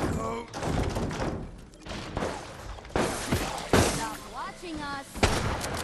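A gun fires several sharp shots.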